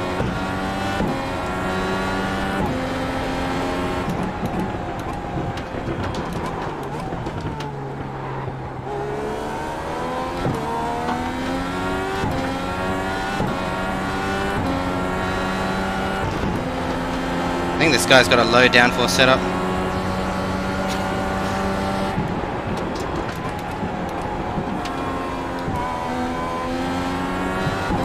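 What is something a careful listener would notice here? A racing car engine revs high, rising and dropping in pitch as gears shift.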